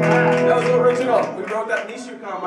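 A band's electric guitars and drums ring out a final chord.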